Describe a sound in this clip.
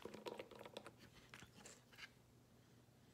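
Small plastic pieces click and tap lightly.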